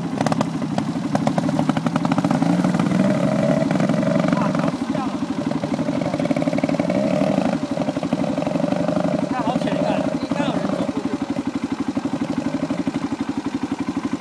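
A small motorbike engine buzzes and revs as the bike rides off and fades into the distance.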